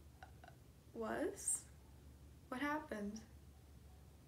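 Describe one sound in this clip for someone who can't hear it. A young woman speaks softly in short phrases.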